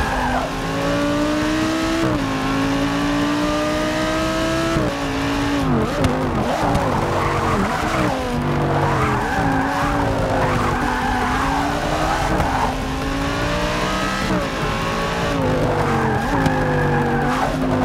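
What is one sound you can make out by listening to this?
A race car engine roars, rising in pitch through each gear and dropping at each shift.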